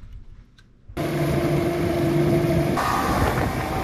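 An outboard motor roars loudly as water churns behind a boat.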